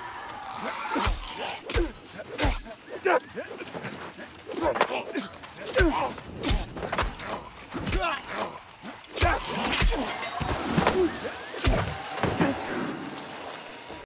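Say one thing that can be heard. Blades swish and strike sharply in a fight, with loud impacts in quick bursts.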